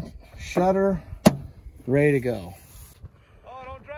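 Hands handle a plastic planter seed meter with a sharp click.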